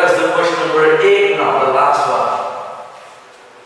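A man speaks clearly and calmly nearby.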